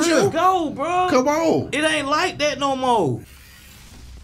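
A man speaks with animation into a microphone close by.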